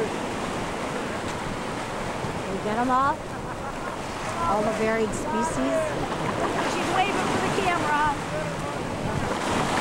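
A woman talks and laughs cheerfully nearby.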